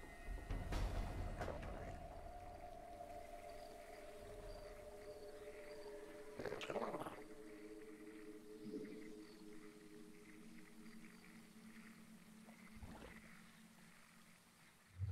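Electronic game sound effects hum and chime.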